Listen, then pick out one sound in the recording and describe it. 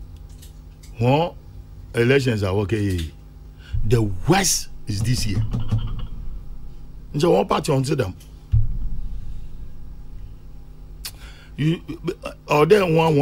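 An elderly man speaks with animation into a close microphone, in bursts with pauses.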